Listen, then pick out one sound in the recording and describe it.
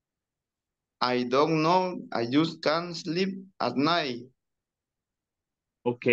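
A young man answers calmly over an online call.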